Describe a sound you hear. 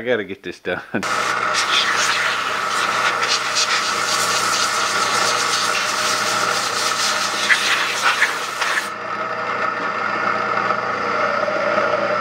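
A milling machine whirs steadily while cutting metal.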